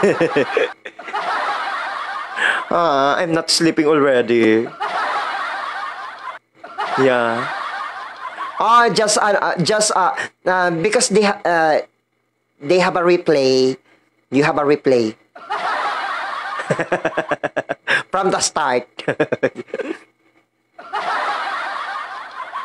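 A young man laughs close into a microphone.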